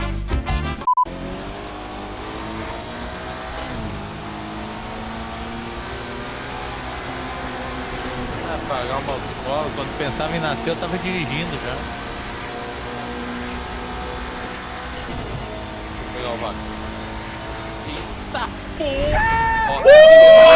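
A racing car engine drones steadily at speed.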